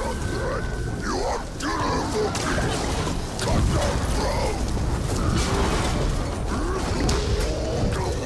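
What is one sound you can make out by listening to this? Heavy thuds and crashes of battle ring out.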